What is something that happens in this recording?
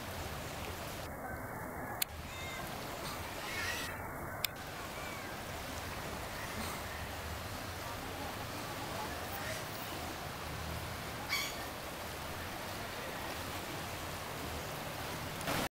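Fast floodwater rushes and churns.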